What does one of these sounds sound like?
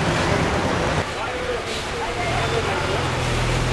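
Men talk nearby in a busy street.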